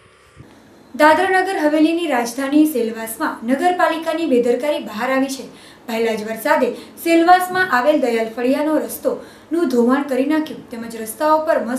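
A young woman reads out the news clearly through a microphone.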